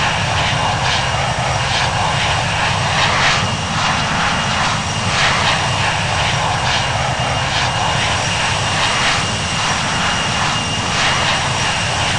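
Jet engines roar steadily as an airliner climbs away.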